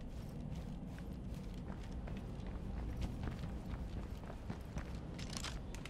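Footsteps crunch quickly over gravel as someone runs.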